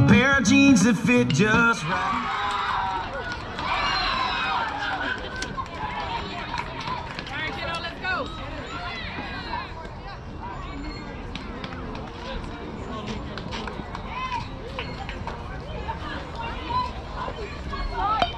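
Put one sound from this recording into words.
Young boys shout and call out across an open field.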